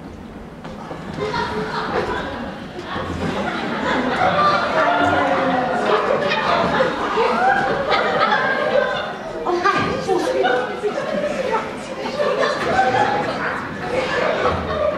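A woman talks with animation in an echoing hall.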